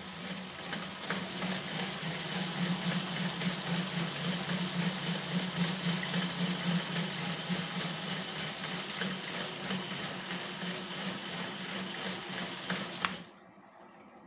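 A power drill whirs, driving an alternator.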